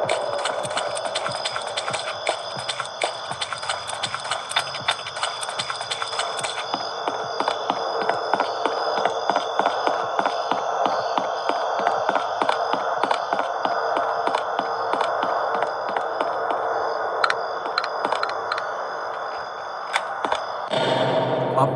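Quick footsteps crunch steadily over the ground.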